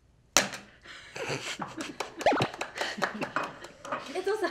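Young women clap their hands.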